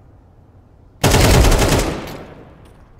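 A rifle fires a rapid burst at close range.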